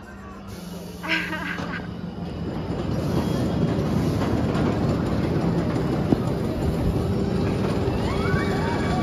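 Riders on a roller coaster scream.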